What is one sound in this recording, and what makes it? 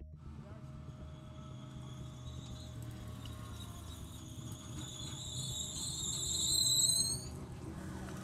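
A race car engine revs loudly and rises in pitch.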